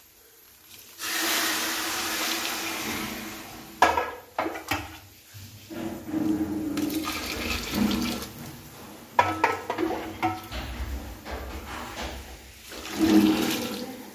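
Water pours from a pot onto rice in a metal pan.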